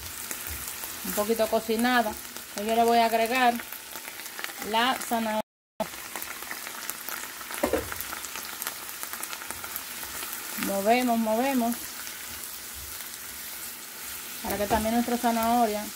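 Onions sizzle softly in a hot pan.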